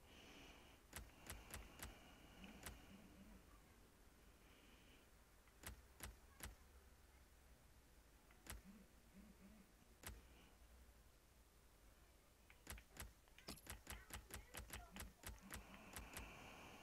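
Short electronic menu ticks click in quick bursts.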